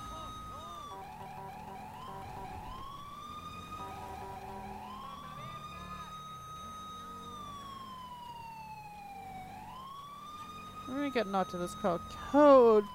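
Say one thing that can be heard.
A police siren wails, rising and falling in pitch.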